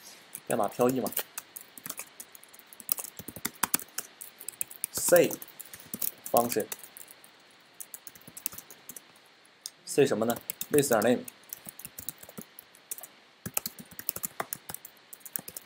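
Keys on a keyboard clatter in quick bursts of typing.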